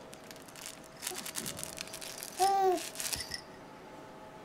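A toy rattles and jingles close by.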